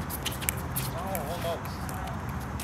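Shoes squeak on a hard court.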